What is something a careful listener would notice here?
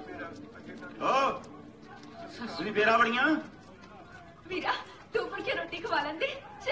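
A woman speaks pleadingly, close by.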